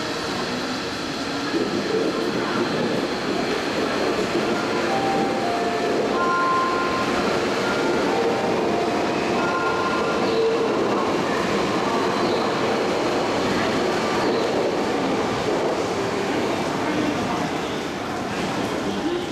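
A train rumbles and clatters past along the tracks, loud and close.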